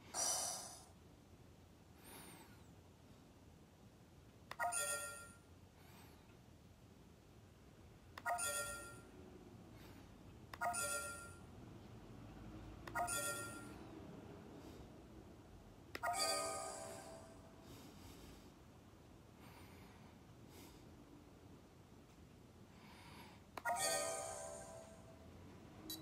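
Short electronic chimes ring out from a small game speaker.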